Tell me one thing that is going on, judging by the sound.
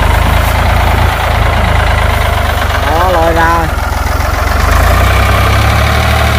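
A tractor engine chugs and rumbles steadily nearby.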